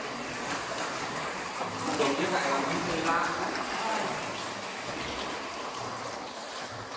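Water laps gently in an echoing cave.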